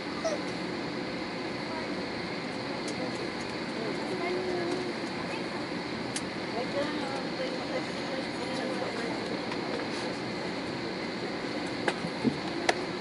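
The jet engines of an Airbus A320 hum at idle, heard from inside the cabin as the airliner taxis.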